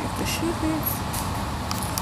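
Plastic packets crinkle as a hand handles them.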